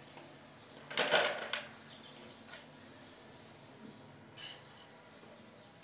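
A small plastic shovel scrapes and scoops dry dirt.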